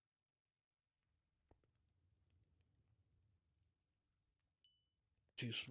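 A man talks calmly into a microphone.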